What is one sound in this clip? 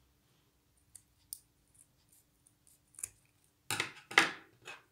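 Scissors snip through thin material.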